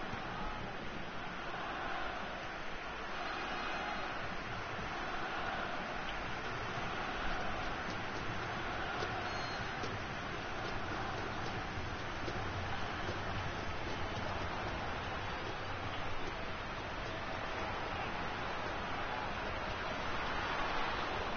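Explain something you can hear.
A stadium crowd roars without a break.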